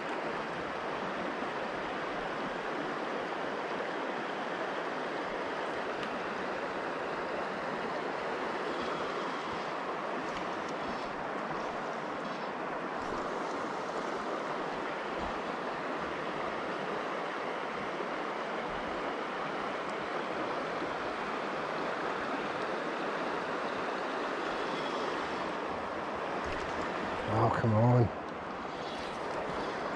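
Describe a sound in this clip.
A river flows and rushes steadily over rocks nearby.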